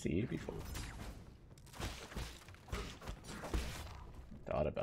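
Game sound effects whoosh and clash during a fight.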